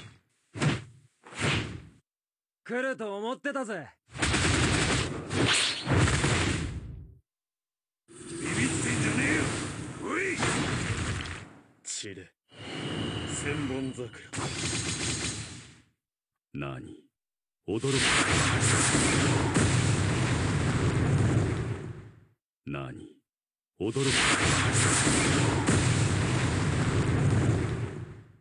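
Sword slashes and explosive blasts crash in short, loud bursts with pauses between them.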